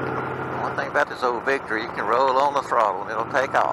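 Wind buffets the microphone on a moving motorcycle.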